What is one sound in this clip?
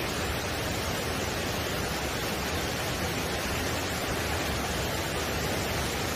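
A mountain stream rushes steadily over rocks nearby.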